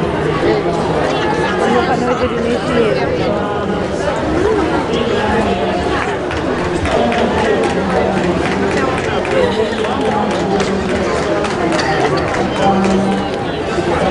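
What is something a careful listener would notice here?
Feet shuffle and tap on a hard floor.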